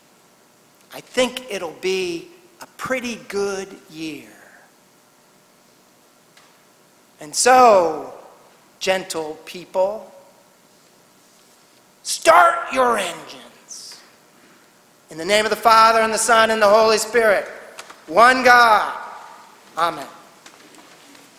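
An elderly man preaches with animation through a microphone in a large echoing hall, pausing between phrases.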